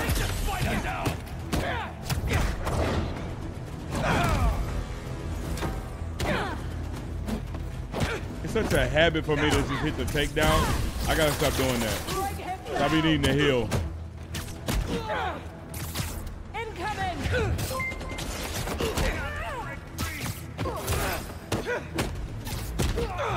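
Punches and kicks thud in quick bursts.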